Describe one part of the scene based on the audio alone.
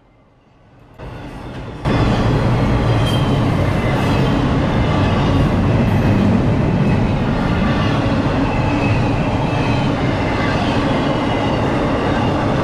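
A freight train rolls past close by with a loud, steady rumble and rattle of wheels on the rails.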